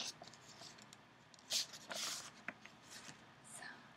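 Paper rustles and crinkles as a card is handled.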